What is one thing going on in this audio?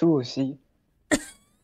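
An elderly woman speaks briefly and close to a microphone.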